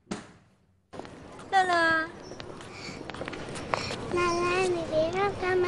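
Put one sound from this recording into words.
A young girl speaks in a high voice.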